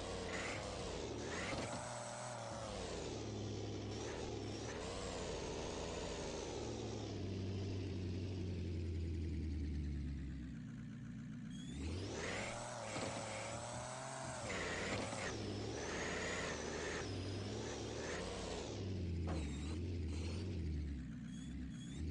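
A truck engine revs and rumbles as it climbs rough ground.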